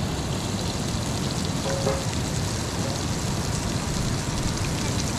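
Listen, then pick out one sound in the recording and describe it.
A river rushes steadily close by.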